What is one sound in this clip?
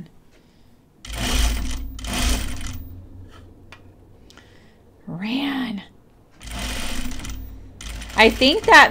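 A sewing machine whirs in short bursts of stitching.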